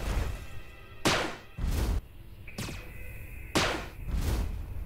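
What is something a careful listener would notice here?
A plasma weapon fires with sharp blasts.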